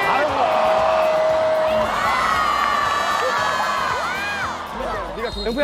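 A crowd of young women cheers and screams loudly.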